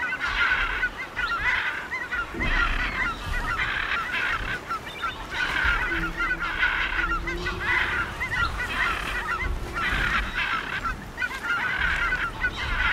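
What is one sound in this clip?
Many birds chirp and twitter in quick bursts.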